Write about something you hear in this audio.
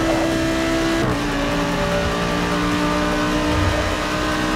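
A racing car engine drops in pitch as the gear shifts up, then climbs again.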